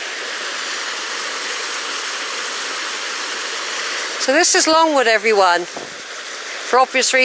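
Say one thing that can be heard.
A small stream splashes and gurgles over rocks nearby.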